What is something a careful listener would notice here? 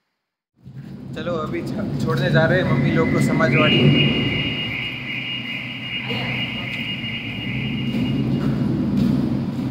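A man speaks with animation in a large echoing space.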